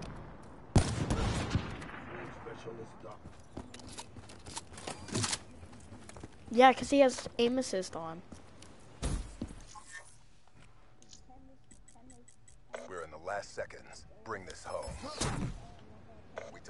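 Loud gunshots crack with a booming echo.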